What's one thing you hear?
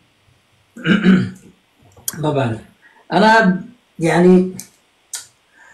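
A young woman speaks with animation, close to a phone microphone.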